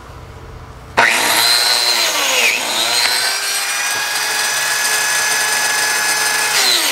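A power tool starts with a sudden whine and runs loudly and steadily.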